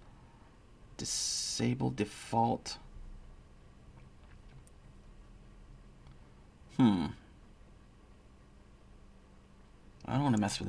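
A young man speaks casually in short bursts, close to a microphone.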